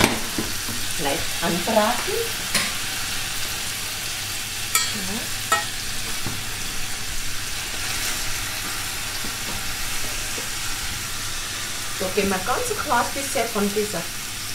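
Food sizzles steadily in a pan.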